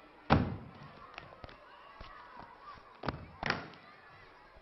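Paper notebooks thump and slap as they are stacked.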